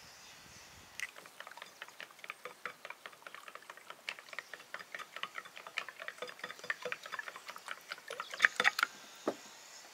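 A whisk beats eggs in a glass bowl with quick clicks.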